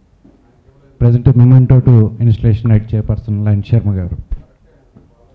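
A man speaks loudly through a microphone and loudspeaker in a hall.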